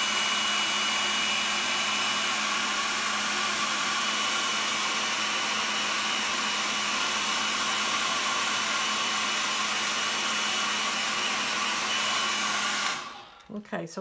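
A hair dryer blows with a steady loud whir.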